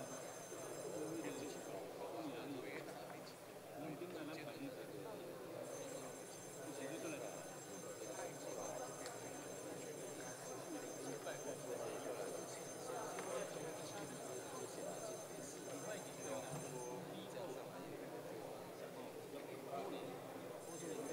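A crowd of men and women talk and murmur all at once in a large echoing hall.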